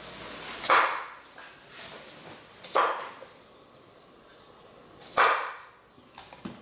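A knife chops through a cucumber onto a wooden board with sharp thuds.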